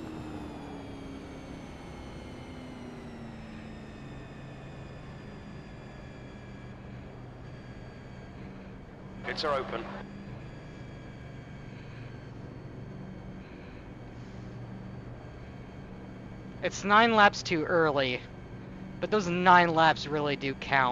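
A racing car engine drones steadily.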